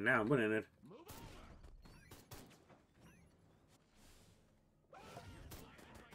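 A futuristic gun fires bright energy shots in short bursts.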